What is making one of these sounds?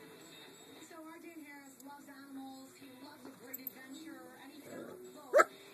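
A small dog whines softly at close range.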